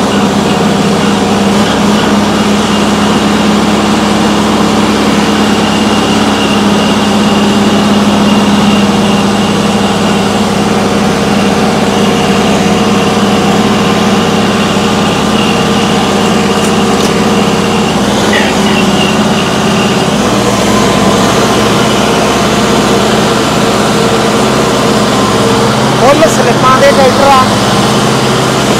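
A tractor engine runs with a steady low rumble.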